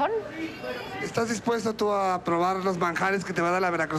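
A man speaks loudly into a microphone over loudspeakers.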